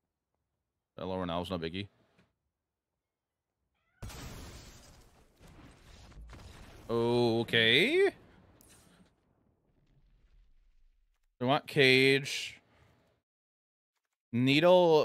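A man talks calmly and closely into a microphone, in short bursts.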